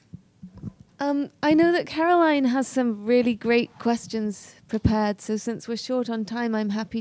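A young woman speaks with animation into a microphone through a loudspeaker.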